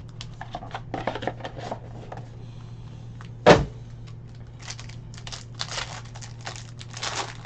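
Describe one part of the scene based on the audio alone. A foil wrapper crinkles and rustles as it is handled.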